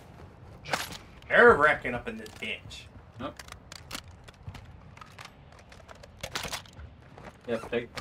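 Game gear clicks and rattles as items are picked up.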